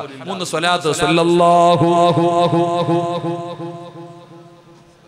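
A man chants loudly through a microphone, holding a long drawn-out note.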